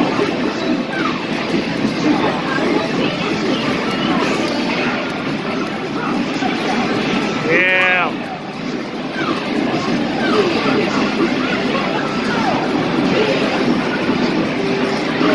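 Game music plays through a loudspeaker.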